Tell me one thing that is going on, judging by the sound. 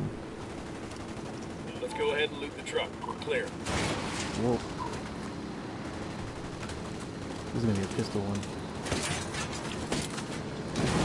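A car engine hums nearby.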